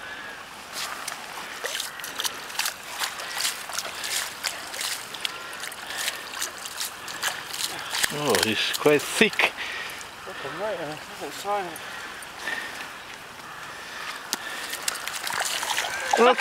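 A fish flaps and splashes at the water's edge.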